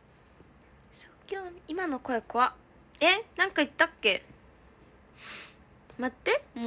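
A young woman speaks close to a microphone, with animation.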